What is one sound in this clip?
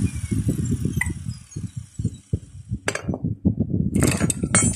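Metal tools clink and scrape against each other.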